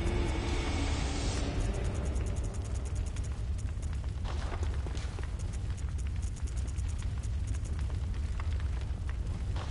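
Menu selections click in quick succession.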